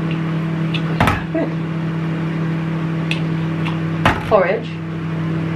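A spoon clinks against a glass jar.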